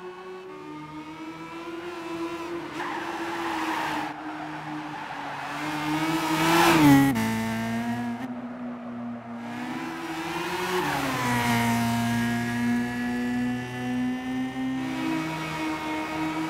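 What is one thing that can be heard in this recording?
A car engine revs high, dropping in pitch with each gear change as it races along.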